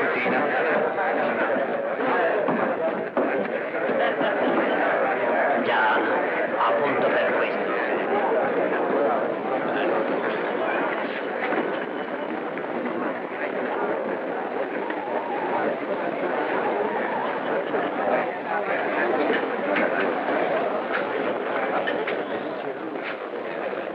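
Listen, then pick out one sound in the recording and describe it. A crowd of men murmurs and chatters all around.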